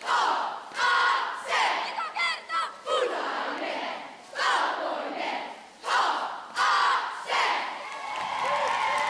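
Young girls shout a cheer in unison, loud and close.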